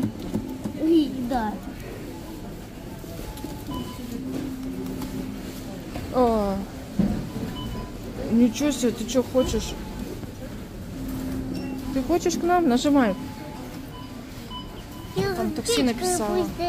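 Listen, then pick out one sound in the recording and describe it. A claw machine plays a bright electronic jingle with sliding tones.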